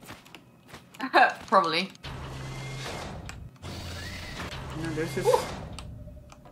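A young woman talks and laughs into a microphone.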